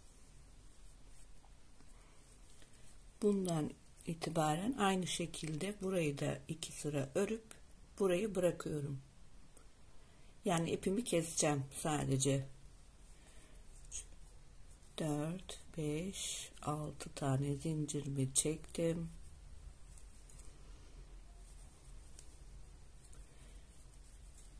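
A crochet hook softly draws twine through loops.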